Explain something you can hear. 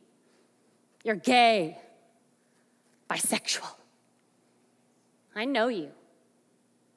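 A woman speaks with expression through a microphone, pausing between short phrases.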